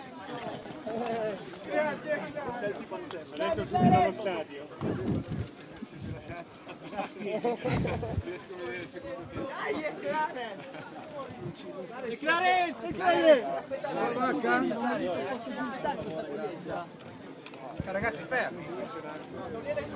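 A crowd of men and women talk and shout over one another close by.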